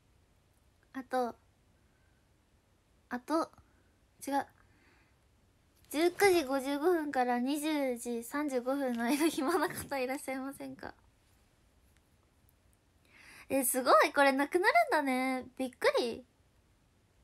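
A young woman speaks softly and playfully, close to a microphone.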